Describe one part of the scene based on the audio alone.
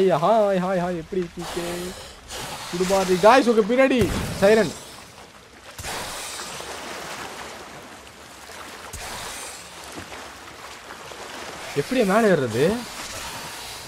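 A young man sings and hums playfully into a close microphone.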